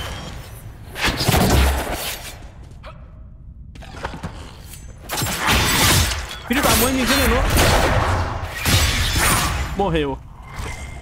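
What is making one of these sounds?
Magic spells burst and whoosh loudly.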